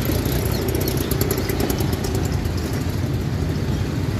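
An auto-rickshaw engine putters past close by.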